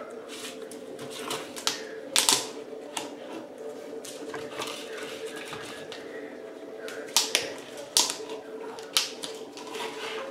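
A dog's bowl clinks and scrapes on a hard floor.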